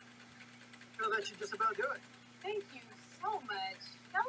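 A young person speaks close to a webcam microphone.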